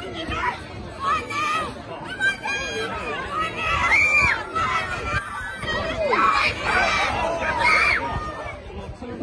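A crowd of men and women shouts and cheers loudly nearby.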